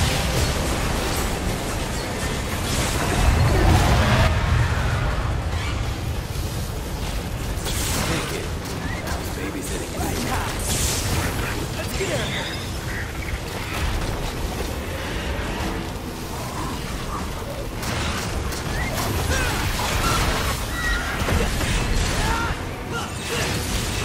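Swords slash and clang in rapid combat.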